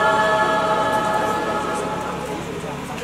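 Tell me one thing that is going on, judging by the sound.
A young mixed choir sings a held final chord that fades out.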